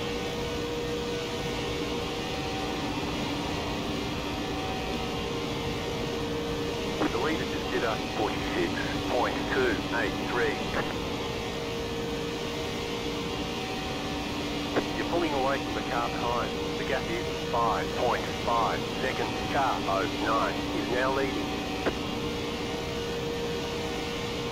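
A race car engine drones steadily at high speed.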